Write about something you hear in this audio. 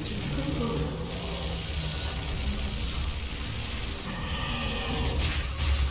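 A monster growls and shrieks.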